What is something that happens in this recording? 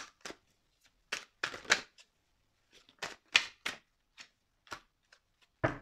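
Cards riffle and snap as they are shuffled.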